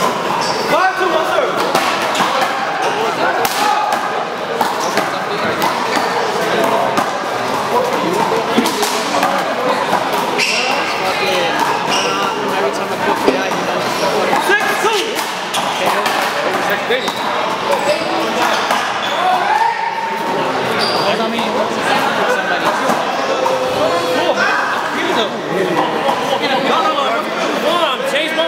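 Men call out and talk with animation in a large echoing hall.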